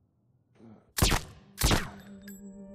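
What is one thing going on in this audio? Two gunshots ring out loudly.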